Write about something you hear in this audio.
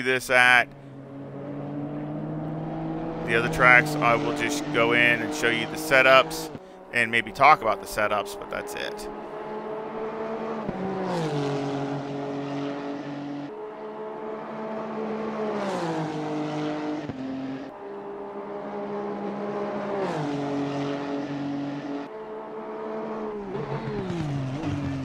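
A racing car engine roars at high revs, rising steadily in pitch and dropping sharply with each gear change.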